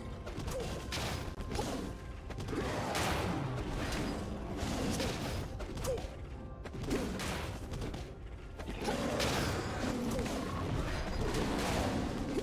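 Magic blasts and hits from a video game battle crackle and thump in quick bursts.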